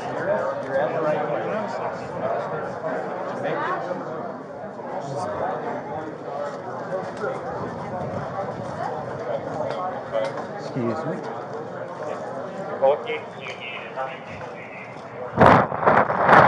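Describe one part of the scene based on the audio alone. A crowd of men and women murmurs and talks nearby indoors.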